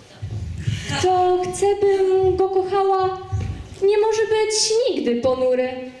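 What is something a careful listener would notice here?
A young woman sings into a microphone over loudspeakers in a large hall.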